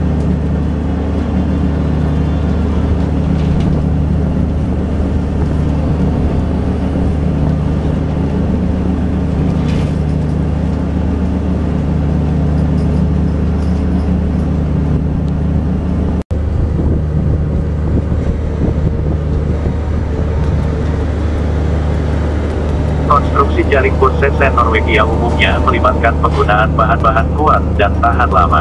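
A ship's engine drones steadily with a deep hum.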